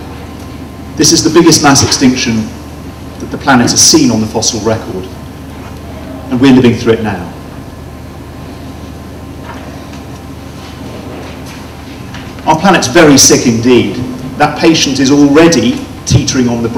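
A man speaks calmly into a microphone, heard through loudspeakers in a room.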